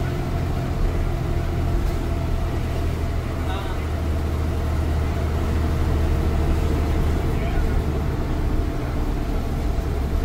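The bus body rattles and creaks over the road.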